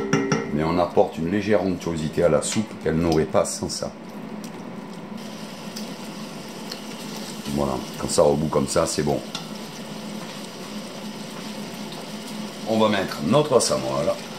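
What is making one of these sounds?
A wooden spoon stirs and scrapes onions in a pot.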